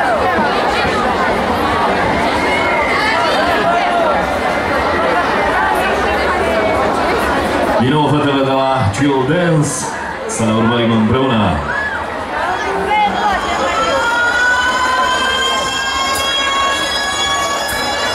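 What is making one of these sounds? Young girls sing together through microphones.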